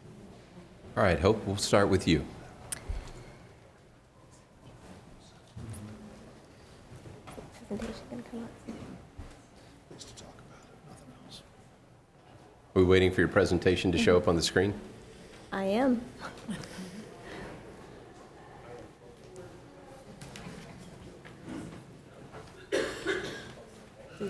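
A woman speaks calmly into a microphone in a large room with some echo.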